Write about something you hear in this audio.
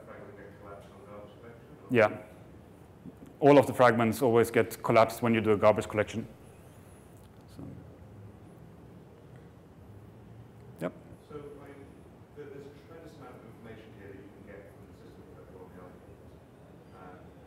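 A man speaks into a microphone in a calm, halting way, with pauses.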